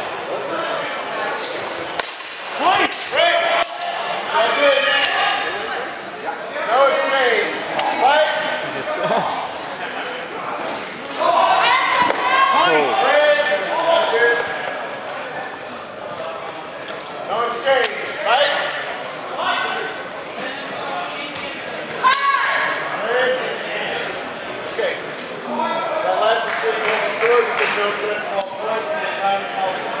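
Men shout and call out loudly nearby.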